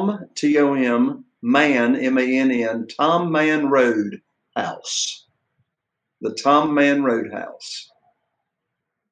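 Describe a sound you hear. An older man speaks calmly over an online call.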